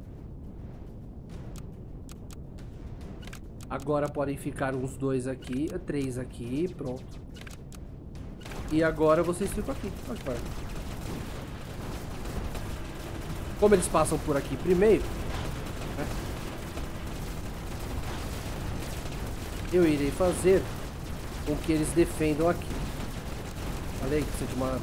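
Energy weapons fire in quick bursts of shots.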